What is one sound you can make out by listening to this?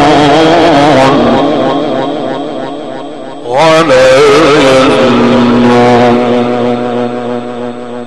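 A man chants in a long, melodic voice through a microphone.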